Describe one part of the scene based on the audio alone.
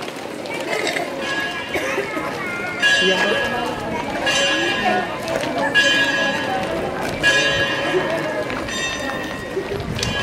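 A brass band plays loudly a short way off.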